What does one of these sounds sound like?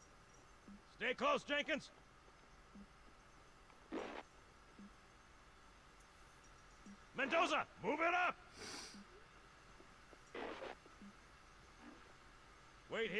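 A man speaks close to a headset microphone, in short bursts.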